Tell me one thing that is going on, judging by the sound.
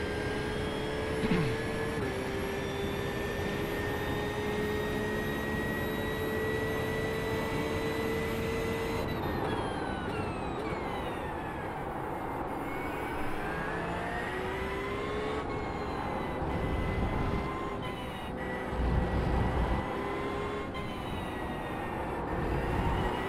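A racing car engine whines at high revs, dropping in pitch under braking and climbing again as it speeds up.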